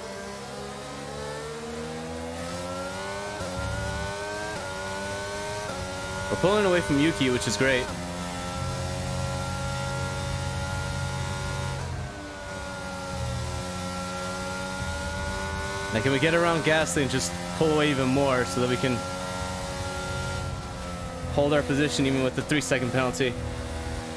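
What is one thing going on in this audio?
A racing car engine whines at high revs, climbing through the gears.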